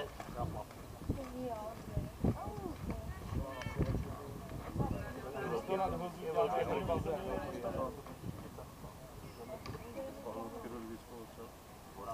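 Men call out and chatter across an open outdoor field.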